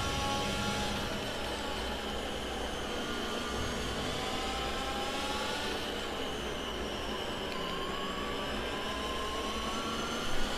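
A racing car engine drops in pitch as the car brakes and shifts down.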